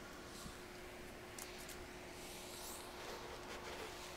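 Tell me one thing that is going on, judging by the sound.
Wires rustle and click as hands handle a small device.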